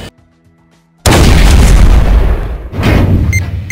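A tank cannon fires with loud, booming blasts.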